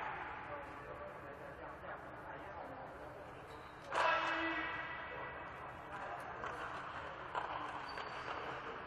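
Men's voices call out and chatter in a large echoing hall.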